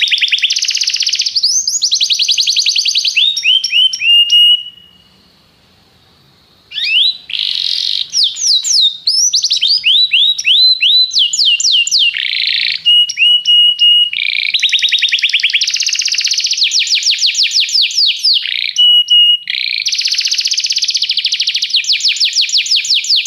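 A canary sings close by in long, rapid trills and warbles, with a short pause early on.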